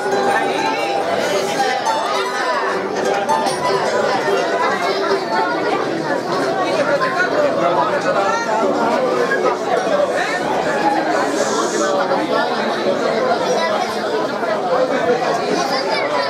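A mixed choir of men and women sings along with the strings.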